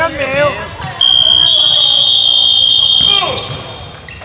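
A loud buzzer sounds steadily, then stops.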